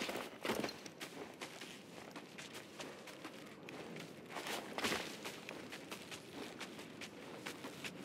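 Leaves rustle as someone climbs through plants.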